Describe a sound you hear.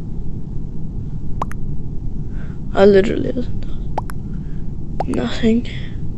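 A game's chat message pops in with a short blip.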